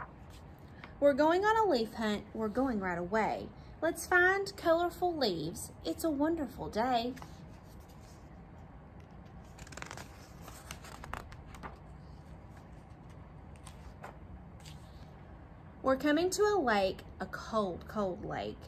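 A young woman reads aloud expressively, close by.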